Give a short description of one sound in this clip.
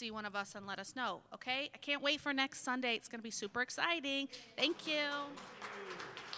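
A woman speaks into a microphone, her voice ringing through a large room.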